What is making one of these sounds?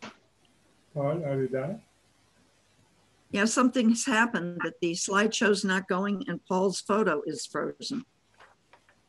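A woman speaks with animation over an online call.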